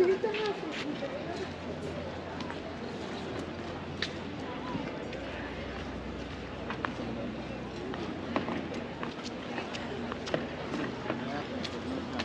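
Men and women chat nearby outdoors.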